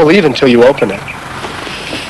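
A young woman speaks with irritation close by.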